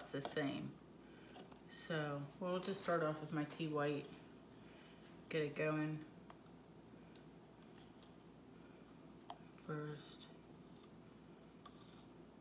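A plastic cup is set down on a hard surface with a soft tap.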